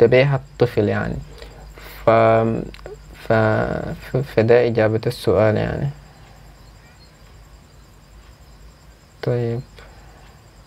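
A young man speaks calmly and close to the microphone.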